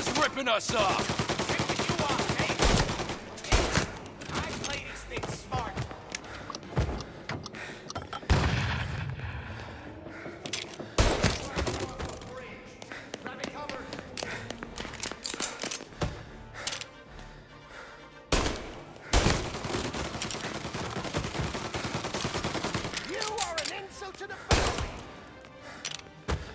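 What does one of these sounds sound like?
Pistol shots ring out sharply, one at a time.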